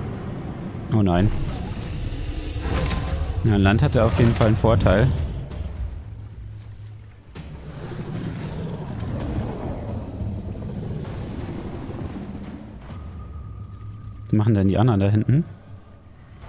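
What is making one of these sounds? A dinosaur creature roars and growls loudly.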